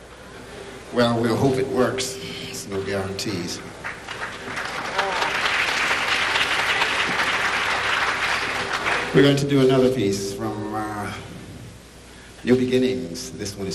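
A man speaks loudly into a microphone in a large echoing hall.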